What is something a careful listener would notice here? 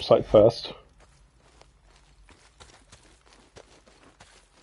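Footsteps crunch through dry brush.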